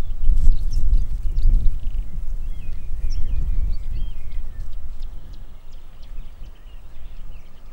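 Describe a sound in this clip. A deer bounds through grass with soft thuds.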